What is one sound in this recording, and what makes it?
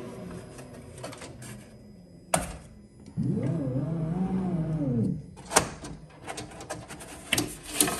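A thin wooden board knocks and scrapes against a metal grid.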